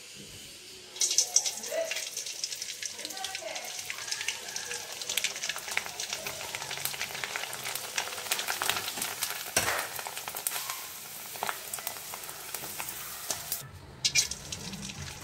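Food sizzles and crackles as it fries in hot oil.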